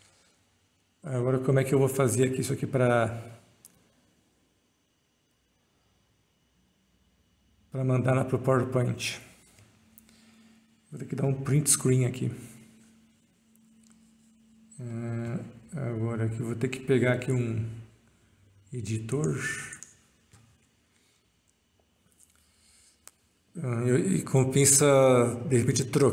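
A man talks calmly into a close microphone, in bursts with pauses.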